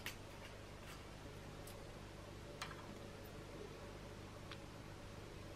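Small metal parts of a sewing machine click and tap under handling.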